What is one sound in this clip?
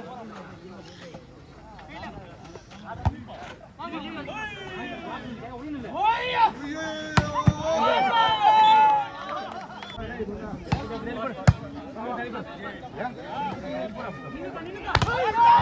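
Players and onlookers shout and call out outdoors.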